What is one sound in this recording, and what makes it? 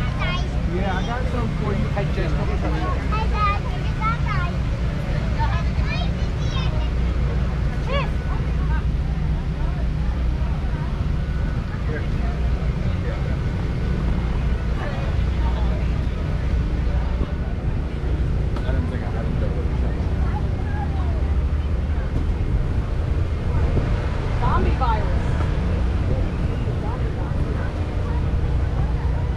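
Men and women chat casually at a distance outdoors.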